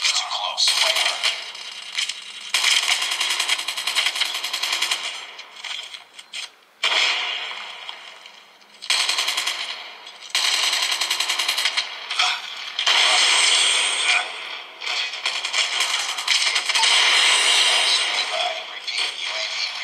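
Rapid gunfire from a video game rattles through a small phone speaker.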